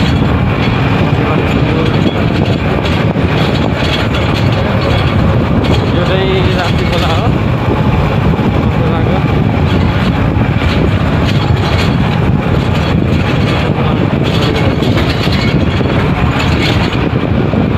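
Wind buffets loudly against the microphone.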